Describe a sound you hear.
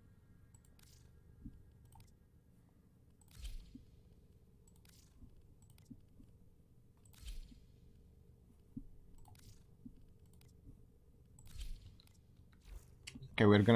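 Soft interface clicks sound again and again.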